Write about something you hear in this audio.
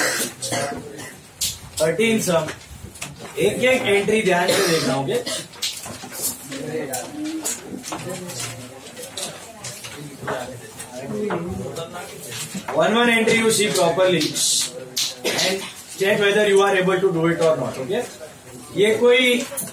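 A young man lectures in an animated voice, close by.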